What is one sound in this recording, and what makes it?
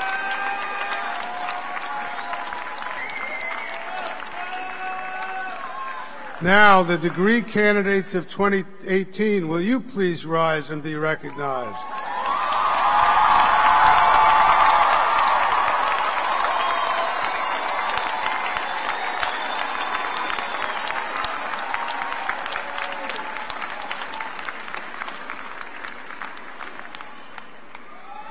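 A large crowd cheers and whistles in a big echoing hall.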